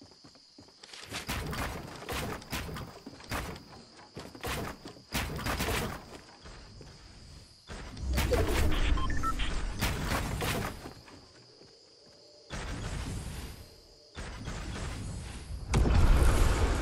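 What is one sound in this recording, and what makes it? Wooden building pieces thud into place in a video game.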